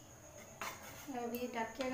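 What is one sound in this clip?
A metal ladle scrapes and stirs in a pan.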